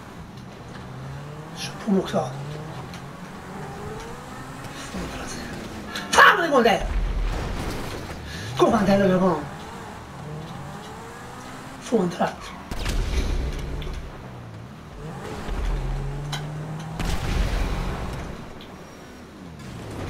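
A sports car engine revs and roars.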